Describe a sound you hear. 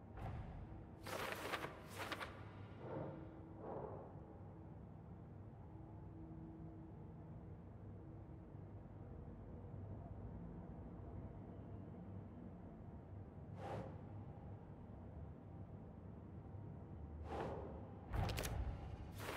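Papers swish and rustle as notes slide across a board.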